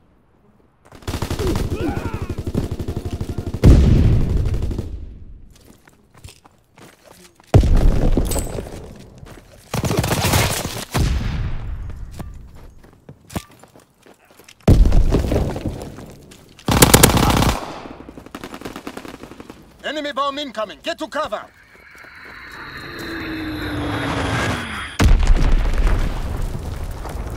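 Rifle shots crack loudly in quick bursts.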